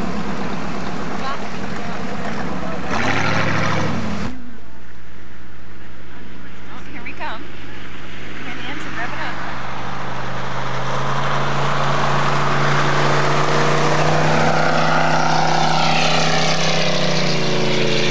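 A jet ski engine roars across the water.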